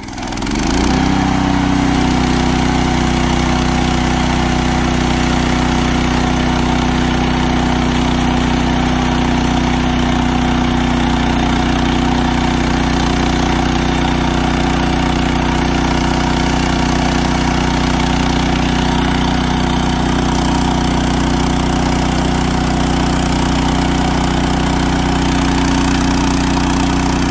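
An engine drones loudly and steadily outdoors.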